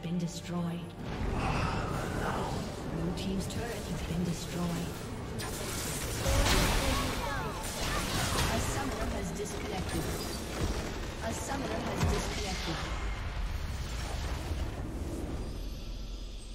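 Game spells and attacks clash in a loud, busy battle.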